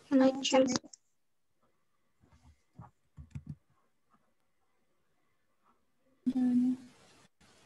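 A woman speaks in short bursts over an online call.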